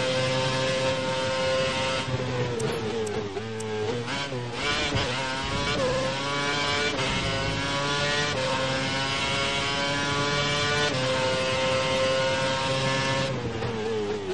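A racing car engine screams at high revs, dropping in pitch for corners and rising again as it speeds up.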